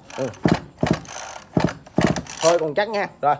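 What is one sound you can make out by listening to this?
Hands knock and rattle against a small plastic chainsaw.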